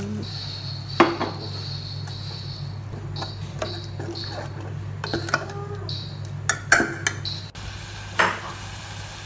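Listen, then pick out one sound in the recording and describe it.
A metal spoon clinks against a pot.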